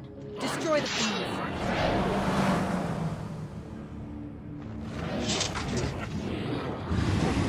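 Magic spells whoosh and crackle in a battle.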